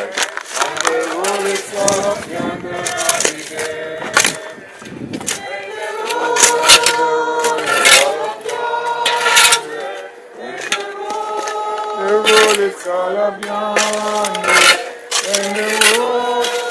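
Shovels scrape and dig into loose sandy soil.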